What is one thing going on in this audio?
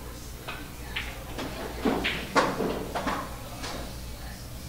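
Pool balls clack against each other and the cushions.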